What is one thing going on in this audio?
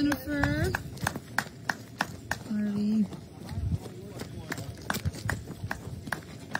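Running footsteps crunch on gravel.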